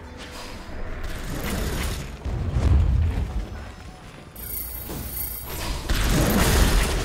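Game spells whoosh and boom in a fast battle.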